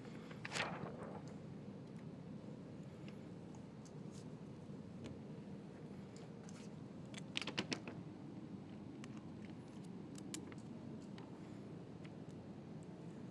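Window film crinkles and rustles as hands pull it.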